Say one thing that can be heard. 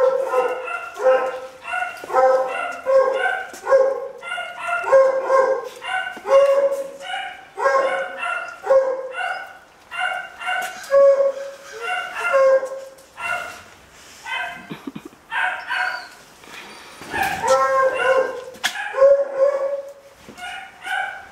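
A man talks warmly to a dog close by.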